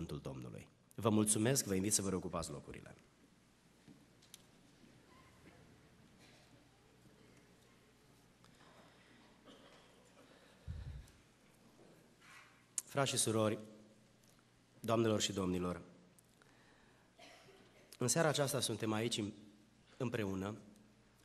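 A middle-aged man speaks into a microphone in bursts, with long pauses between phrases.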